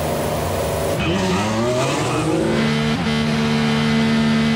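A racing car engine revs up and accelerates away.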